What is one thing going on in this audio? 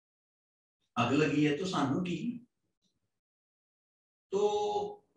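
A middle-aged man speaks calmly into a microphone, in short bursts with pauses.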